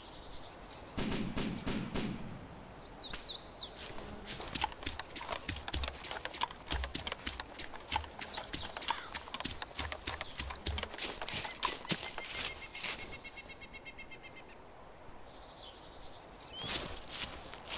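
Leafy branches rustle as someone pushes through bushes.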